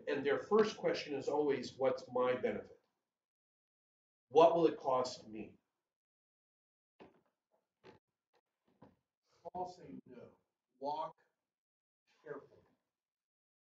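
A middle-aged man speaks with animation in a room with a slight echo, pausing between phrases.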